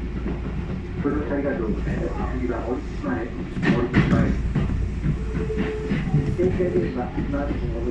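Another train passes close by with a rushing roar.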